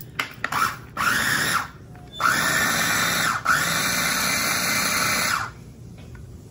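A food chopper whirs loudly in short bursts.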